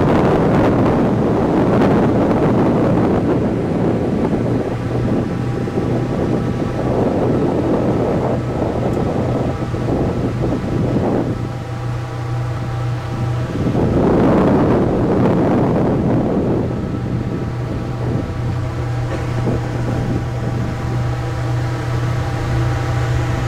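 Water rushes past a boat's hull.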